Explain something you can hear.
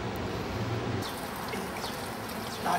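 Water splashes from a fountain spout into a stone basin.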